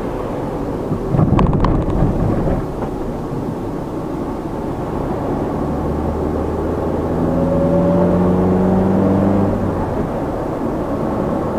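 Tyres hum steadily on a road from inside a moving car.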